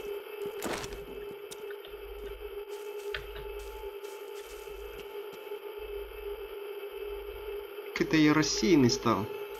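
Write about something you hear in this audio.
Footsteps thud on dirt.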